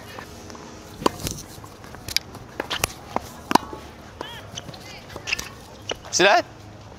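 Tennis balls are struck sharply with rackets.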